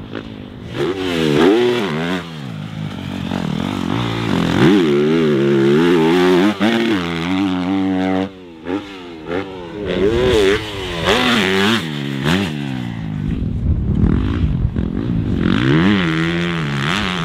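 A dirt bike engine revs hard, rising and falling in pitch.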